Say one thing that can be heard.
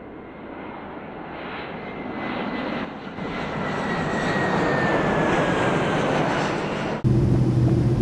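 A propeller plane's engines roar as it flies overhead.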